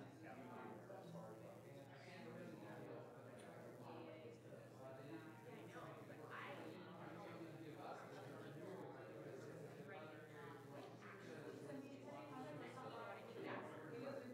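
Many men and women chat at once in a room with some echo.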